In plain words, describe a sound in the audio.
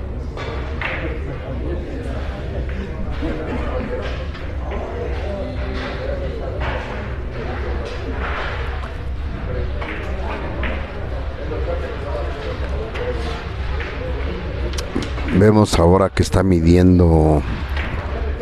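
Men chat in the background of a busy hall.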